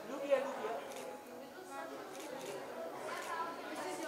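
A middle-aged woman talks cheerfully close by.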